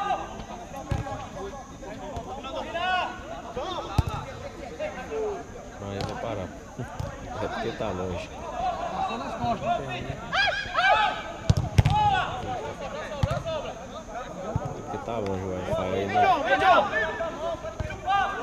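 Young men shout and call to each other across an outdoor pitch.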